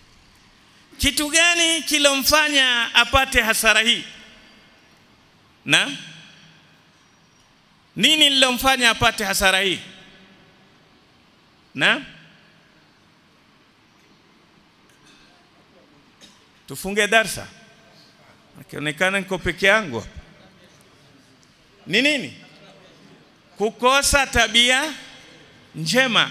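A middle-aged man preaches with animation through a microphone, in bursts with pauses, his voice ringing in a reverberant hall.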